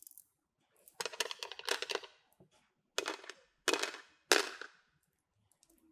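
A string of plastic beads clatters down onto a hard plastic surface.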